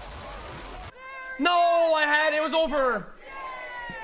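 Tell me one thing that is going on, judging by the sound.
A young man shouts loudly and excitedly into a microphone.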